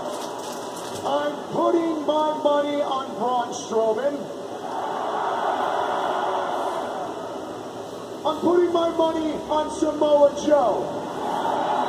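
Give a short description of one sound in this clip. A man speaks casually, close by, in short bursts.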